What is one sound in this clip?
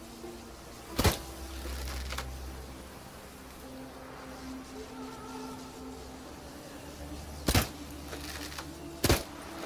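A crossbow fires bolts with sharp snaps.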